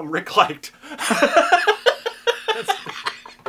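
An older man laughs heartily, close by.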